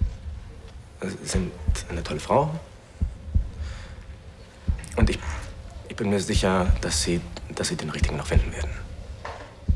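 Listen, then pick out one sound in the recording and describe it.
A man speaks in a low, serious voice close by.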